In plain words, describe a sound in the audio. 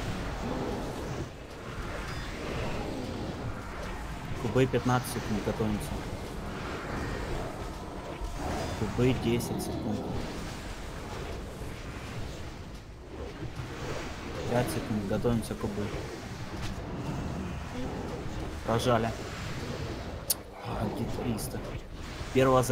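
Spells and blows crackle and boom in a fantasy battle.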